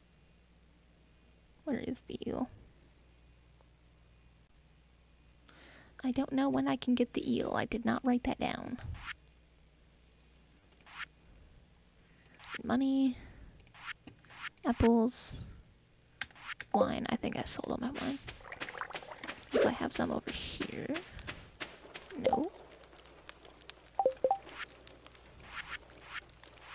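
Soft menu clicks and chimes sound from a video game.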